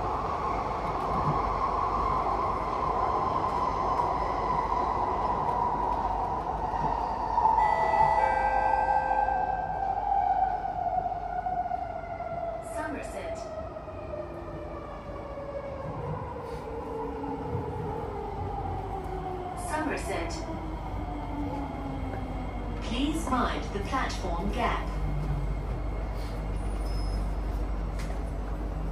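A train hums and whines steadily as it rolls along, its pitch slowly falling as it slows.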